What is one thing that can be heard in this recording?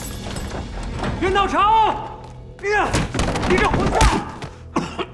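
A young man shouts angrily up close.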